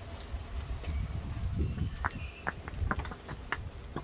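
Pony hooves click on stone paving.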